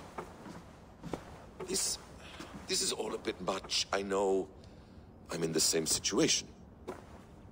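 A younger man speaks hesitantly up close.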